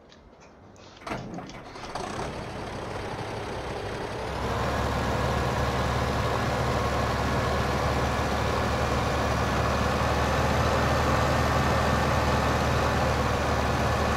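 A tractor engine rumbles steadily as the tractor drives along.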